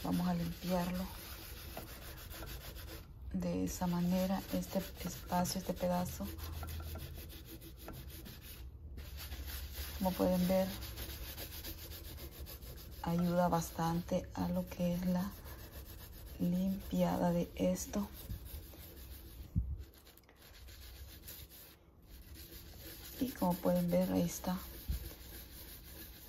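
A sponge scrubs wetly against a smooth glass surface.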